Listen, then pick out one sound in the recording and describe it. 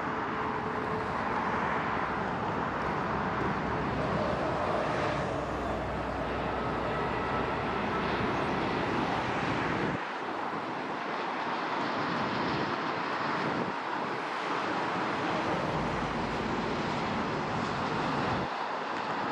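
A large jet airliner roars loudly as it flies low overhead.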